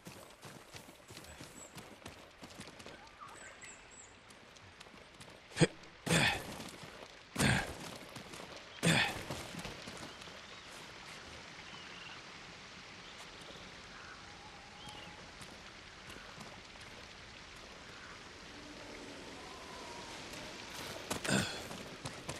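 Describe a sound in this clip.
Footsteps scrape and crunch on rock.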